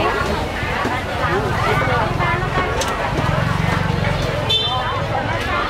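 Several women and men chatter close by and all around.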